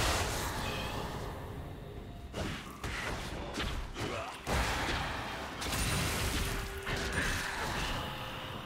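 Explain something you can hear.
Game spells and attacks crackle and burst in a battle.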